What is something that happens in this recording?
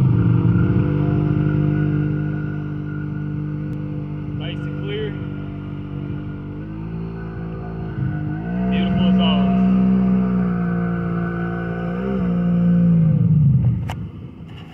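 A boat engine drones steadily, changing pitch as it speeds up and slows down, then cuts off.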